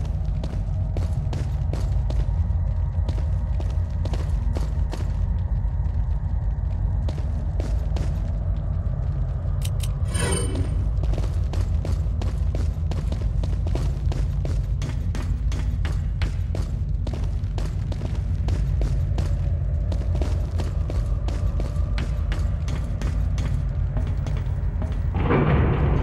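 Footsteps thud steadily on hard ground and metal stairs.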